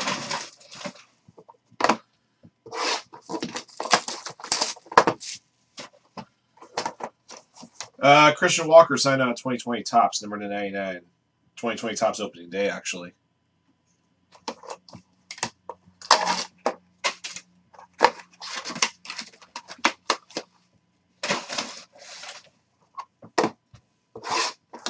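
Plastic card cases click and clack together.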